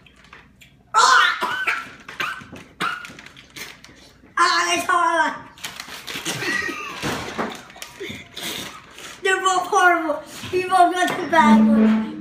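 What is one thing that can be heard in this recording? A boy laughs and squeals loudly.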